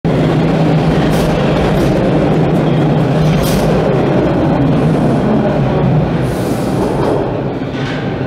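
A subway train rumbles loudly past and pulls away.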